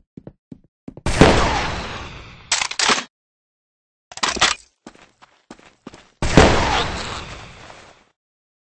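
A firework launcher fires with a loud whoosh and bang.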